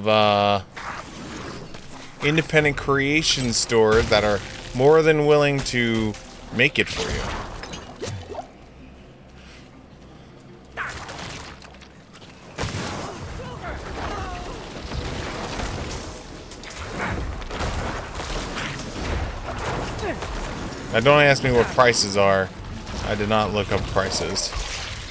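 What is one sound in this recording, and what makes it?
A man talks close to a microphone, casually and with animation.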